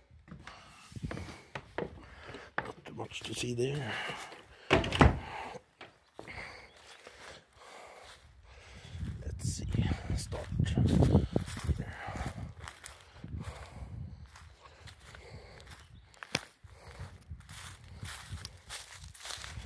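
Footsteps rustle through dry grass and twigs.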